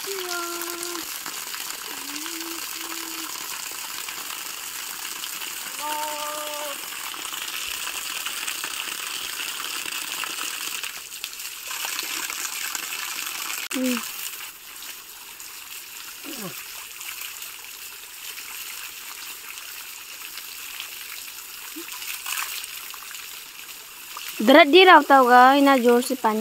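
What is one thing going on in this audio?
A cat meows loudly and plaintively.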